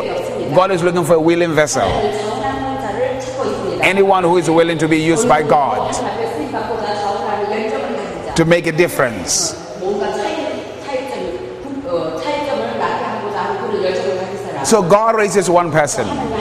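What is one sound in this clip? A middle-aged woman speaks through a microphone.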